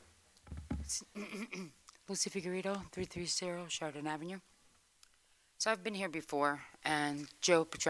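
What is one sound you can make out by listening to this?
A middle-aged woman speaks calmly into a microphone in a large room.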